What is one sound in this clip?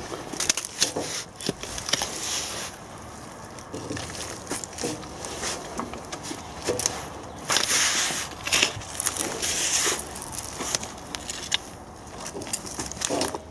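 A garden fork scrapes and rustles through damp compost.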